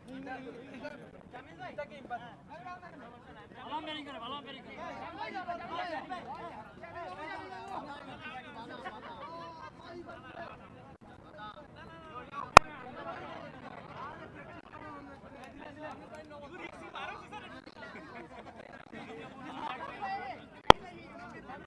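A crowd of men and women talk and shout outdoors.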